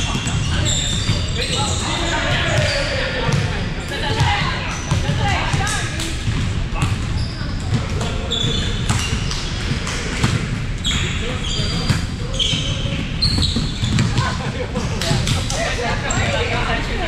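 Players call out and chatter across a large echoing hall.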